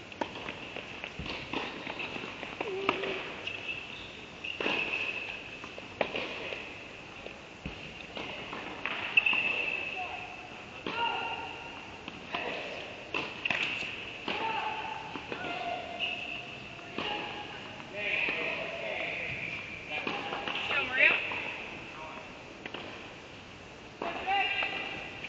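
Shoes squeak sharply on the court.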